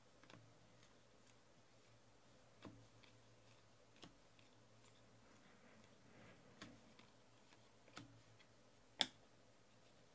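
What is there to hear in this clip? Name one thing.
Trading cards slide and snap softly against each other as they are shuffled by hand.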